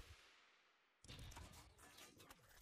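A heavy metal object lands with a deep thud.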